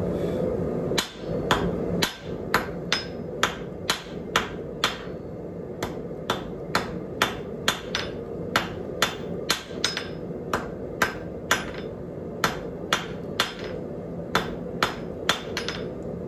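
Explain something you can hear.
A hammer rings sharply on an anvil in a steady rhythm.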